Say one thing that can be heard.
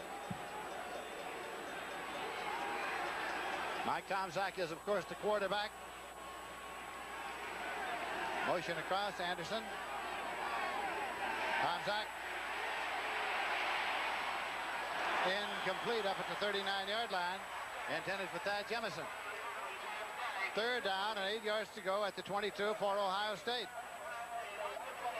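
A large stadium crowd roars and cheers, swelling loudly then easing off.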